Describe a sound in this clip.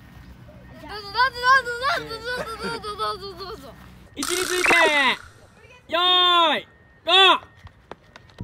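Young boys laugh playfully.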